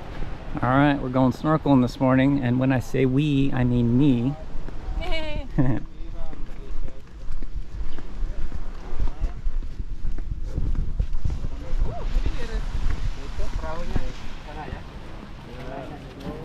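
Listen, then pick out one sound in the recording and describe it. Footsteps walk on a paved path.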